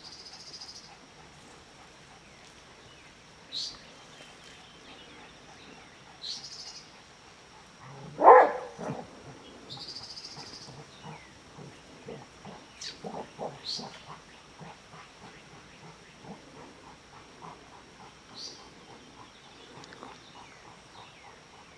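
A bullfrog gulps and smacks wetly as it swallows prey.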